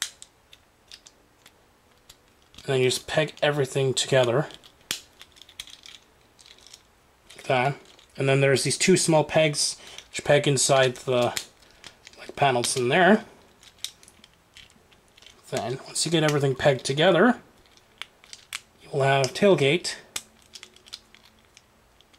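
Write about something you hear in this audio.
Small plastic parts click and snap as a toy is handled close by.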